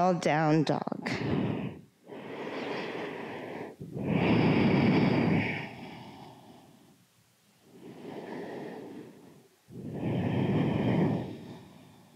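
A woman breathes slowly and deeply, close by.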